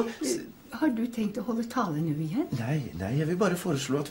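An elderly woman speaks briefly and calmly, close by.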